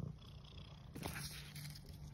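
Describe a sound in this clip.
A piece of dry bracket fungus snaps off a tree trunk.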